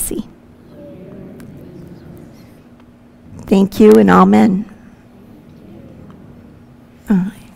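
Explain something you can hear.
A woman speaks warmly into a microphone in a reverberant room.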